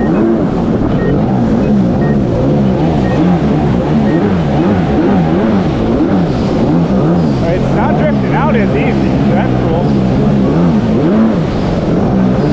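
Water splashes and sprays behind a jet ski.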